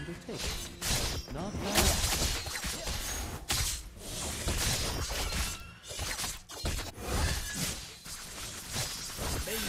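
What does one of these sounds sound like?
Video game sword strikes and magic effects whoosh and clash.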